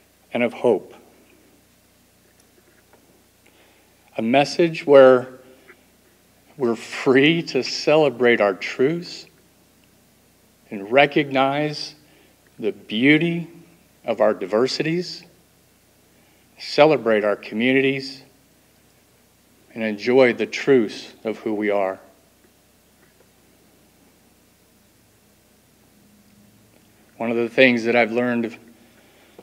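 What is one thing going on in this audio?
A woman speaks slowly and deliberately into a microphone, with long pauses.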